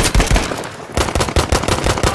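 Gunshots fire rapidly at close range.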